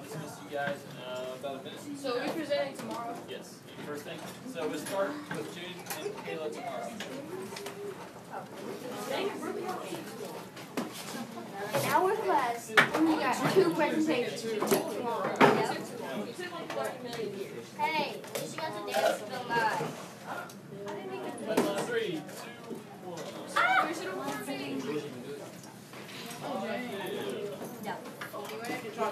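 Young students chatter and talk nearby.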